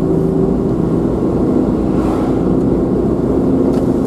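An oncoming van passes by with a brief whoosh.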